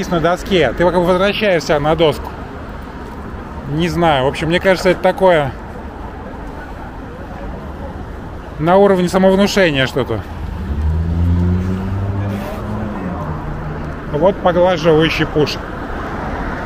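A man nearby calls out loudly in short bursts.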